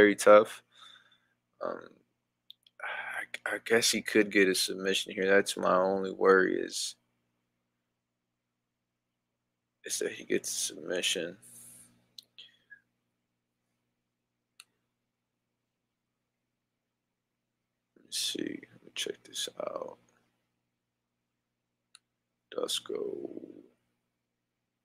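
A young man talks casually into a close headset microphone, pausing now and then.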